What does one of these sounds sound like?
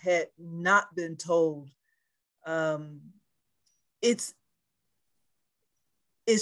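An elderly woman speaks with animation over an online call, in short bursts with pauses.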